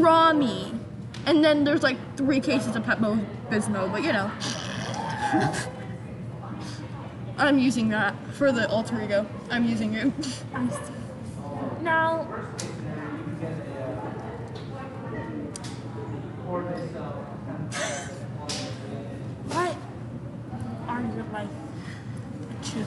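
A young girl talks and laughs with animation close by.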